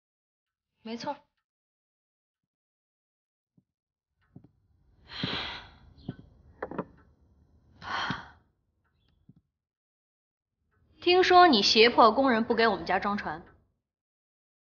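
A woman speaks in short bursts, close by.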